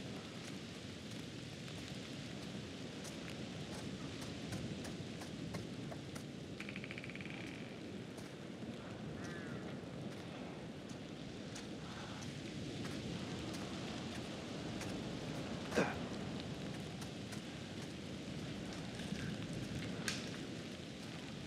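Footsteps crunch over grass and leaves.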